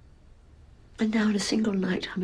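A middle-aged woman speaks tensely nearby.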